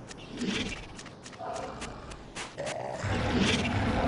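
Footsteps run over soft ground.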